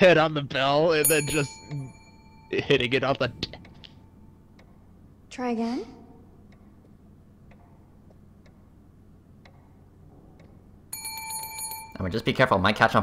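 A desk bell rings with a clear ding.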